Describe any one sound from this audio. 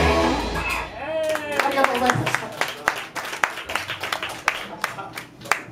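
A band plays live music with electric guitars.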